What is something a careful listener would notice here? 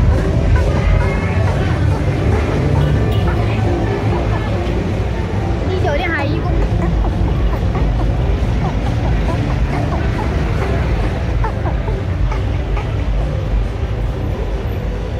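Busy street traffic rumbles steadily outdoors.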